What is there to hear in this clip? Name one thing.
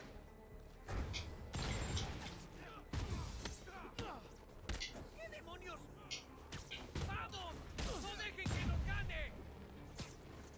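Punches thud during a fight.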